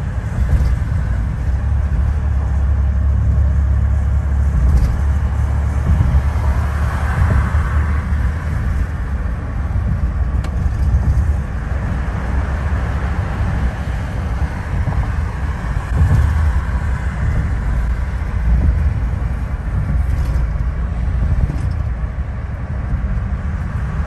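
Wind rushes past the car window.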